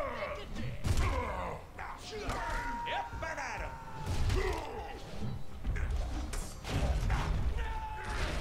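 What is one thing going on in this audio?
Blades slash and clang against enemies in fast bursts.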